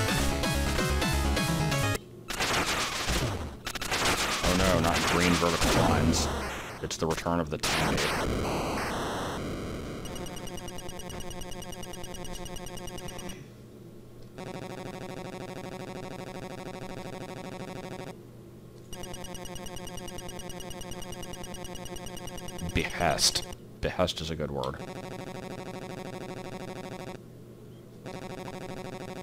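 Chiptune game music plays loudly.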